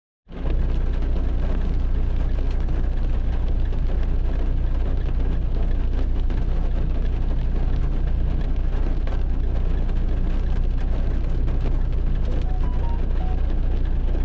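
Heavy rain patters steadily on a car windshield.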